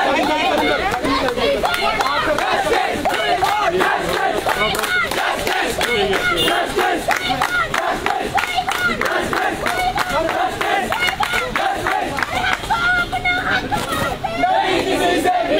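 A crowd of young men chants loudly outdoors.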